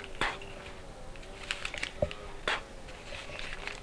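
Banknotes rustle as a man counts them.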